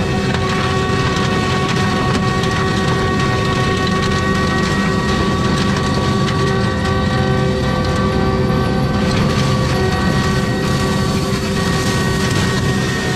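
A heavy machine's engine roars steadily close by.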